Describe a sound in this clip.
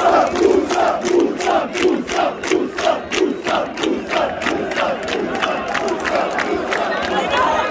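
A stadium crowd claps in a steady rhythm.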